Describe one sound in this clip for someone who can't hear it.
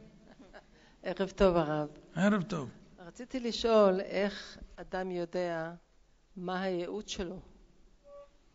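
A middle-aged woman speaks through a handheld microphone.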